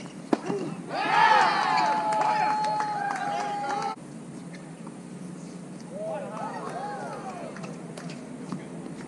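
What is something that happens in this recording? A man calls out and talks loudly across an outdoor court.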